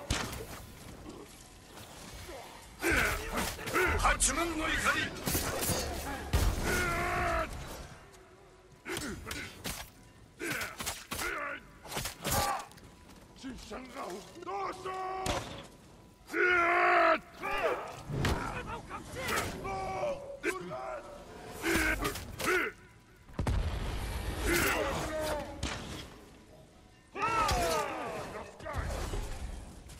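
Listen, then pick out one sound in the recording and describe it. Swords clash and slash in quick, heavy strikes.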